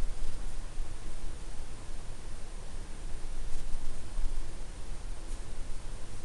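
A pen scratches softly on paper as it writes.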